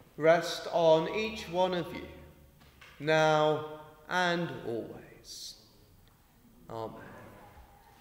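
A man sings close to a microphone in a large echoing hall.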